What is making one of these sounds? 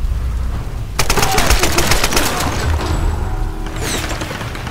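A rifle fires several sharp shots in quick succession.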